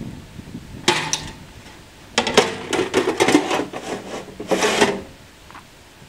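A metal guard clanks and rattles shut.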